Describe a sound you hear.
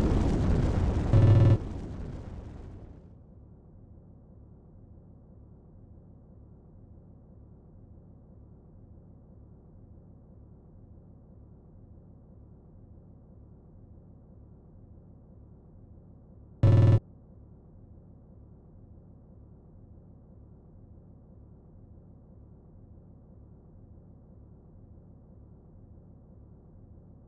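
A deep, eerie hum drones on steadily.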